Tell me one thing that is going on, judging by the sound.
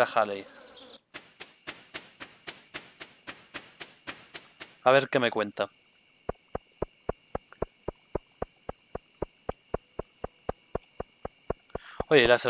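Quick footsteps tap steadily along a path.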